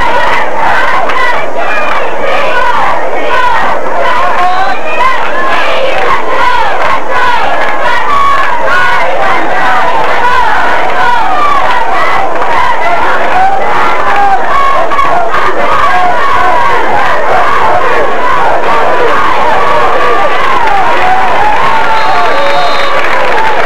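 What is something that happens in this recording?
A crowd of spectators chatters and shouts loudly nearby, outdoors.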